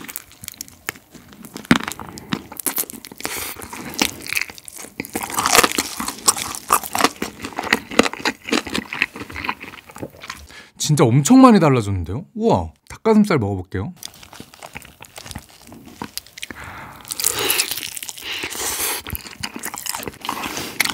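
A young man chews and slurps food close to a microphone.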